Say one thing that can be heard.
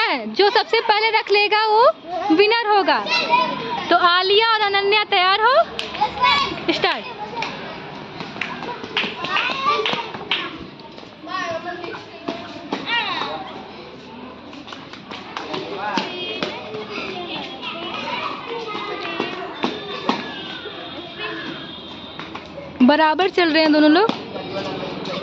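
Young children shout and cheer excitedly nearby, outdoors.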